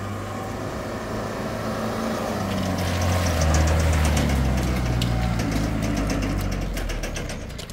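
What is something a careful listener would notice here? A small truck engine rumbles closer and revs as it arrives.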